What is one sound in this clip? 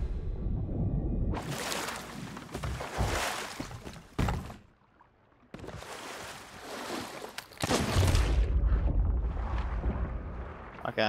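Wind blows over open water.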